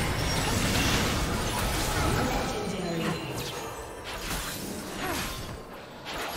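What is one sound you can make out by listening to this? Spell effects in a video game battle whoosh and crackle rapidly.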